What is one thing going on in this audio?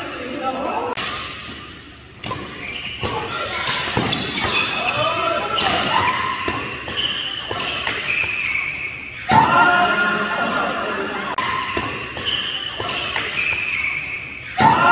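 Badminton rackets smack a shuttlecock in quick rallies.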